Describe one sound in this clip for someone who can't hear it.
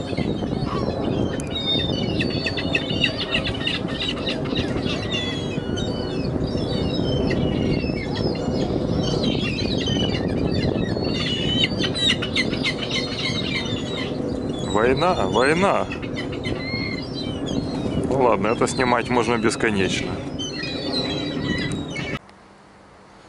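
Many gulls squawk and cry loudly, close by.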